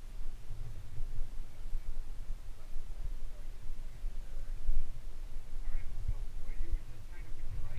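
A climber's hands scrape against rough rock.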